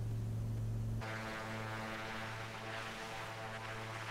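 A single-engine piston plane's engine drones, heard from outside.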